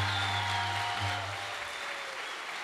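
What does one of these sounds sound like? A jazz band plays a final chord in a large hall.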